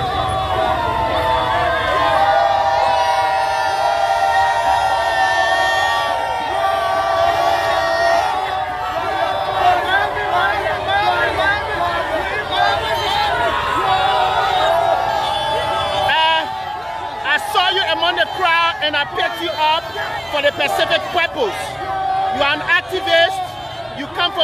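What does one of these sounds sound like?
A large crowd outdoors cheers and sings loudly.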